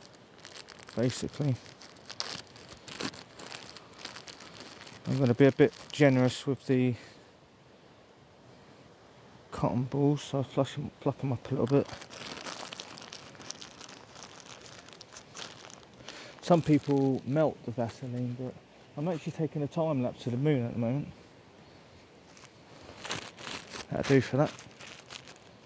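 A man talks calmly nearby in short bursts.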